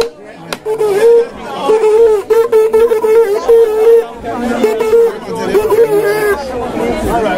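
A horn blows in short, steady blasts close by.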